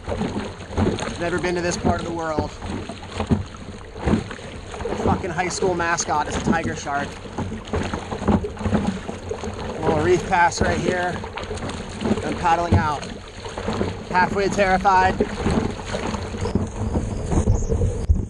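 Water splashes as hands paddle through it.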